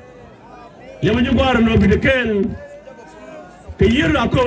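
A man speaks loudly with animation through a microphone and loudspeakers outdoors.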